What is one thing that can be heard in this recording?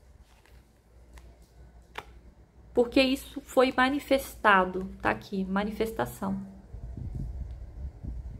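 Playing cards slide and tap against each other.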